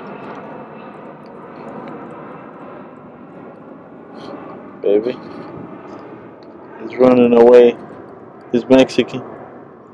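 Calm water laps gently against rocks.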